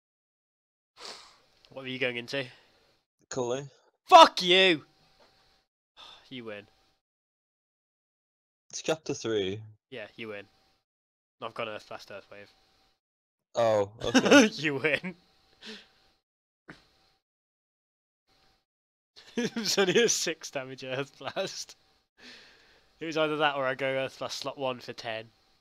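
A young man talks with animation into a close microphone, in short bursts with pauses.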